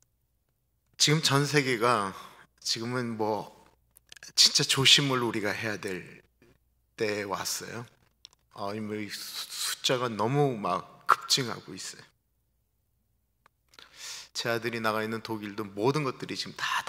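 A middle-aged man speaks with animation into a microphone, heard through a loudspeaker.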